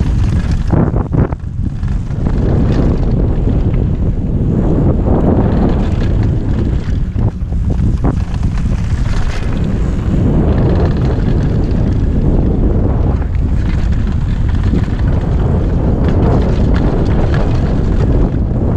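Wind rushes loudly past as a bike speeds downhill.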